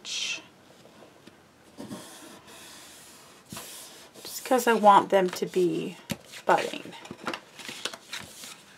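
Stiff paper rustles and scrapes as it is folded and creased.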